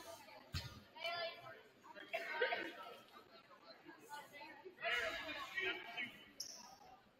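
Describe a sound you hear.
Sneakers squeak on a hardwood court in a large echoing gym.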